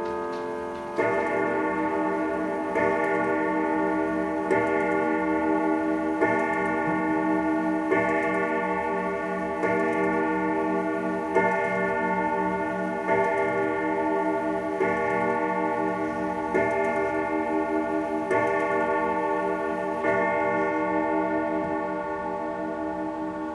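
A clock strikes the hour with deep, ringing bell tones, one every couple of seconds.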